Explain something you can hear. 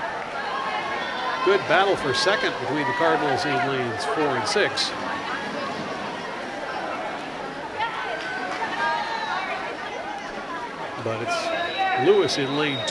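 Swimmers splash through water in a large echoing hall.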